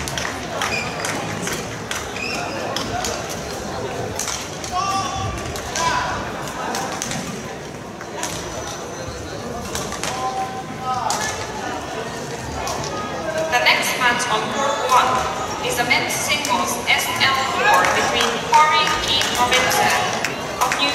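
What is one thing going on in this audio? Shuttlecocks are struck sharply with rackets.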